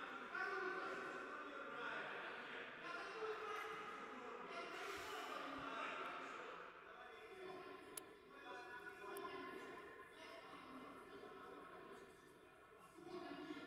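Voices of a crowd of men chatter and call out in a large echoing hall.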